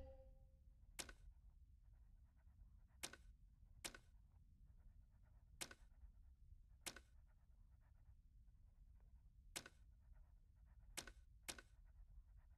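Short, soft menu clicks sound every second or two.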